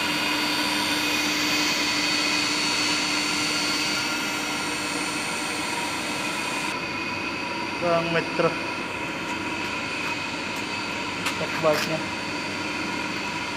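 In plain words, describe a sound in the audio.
Pumps hum steadily.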